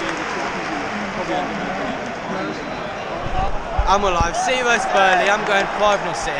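A large stadium crowd chatters and sings in a wide open space.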